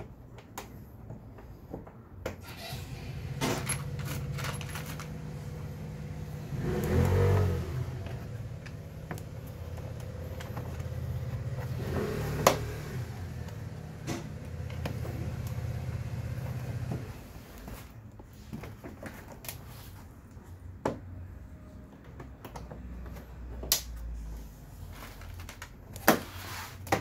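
Plastic body panels click and knock as they are fitted by hand.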